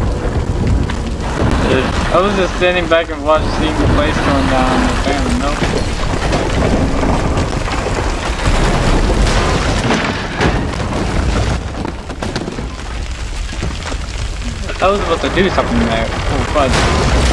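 A low rumble drones steadily.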